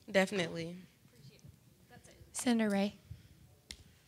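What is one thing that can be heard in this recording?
A woman speaks up loudly in short bursts nearby.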